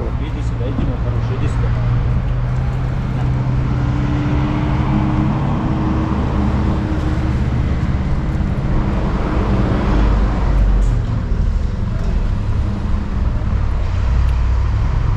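Wind rumbles across an outdoor space.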